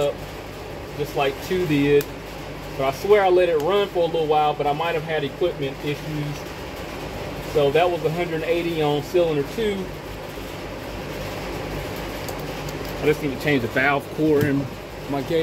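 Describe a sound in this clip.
Plastic engine parts click and rattle as a hand handles them.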